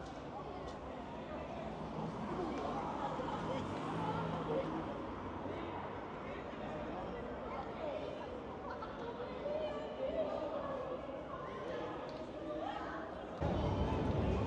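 High heels click on pavement.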